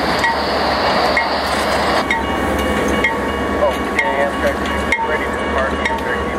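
A railway crossing bell rings steadily at an even pace.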